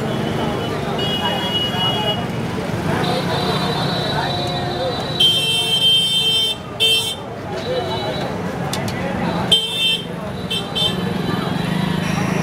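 A busy street crowd murmurs outdoors.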